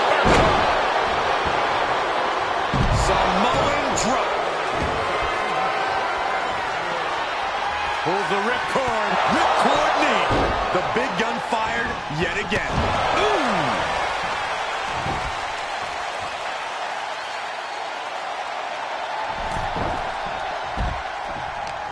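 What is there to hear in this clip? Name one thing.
Heavy thuds of bodies slamming onto a wrestling mat ring out now and then.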